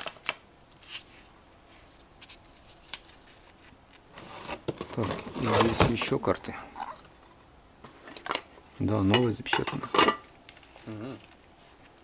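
Small objects knock and rattle as hands rummage through a cardboard box.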